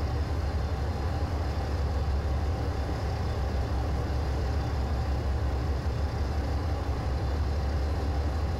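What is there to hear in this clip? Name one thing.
A diesel locomotive engine drones with a low, steady rumble.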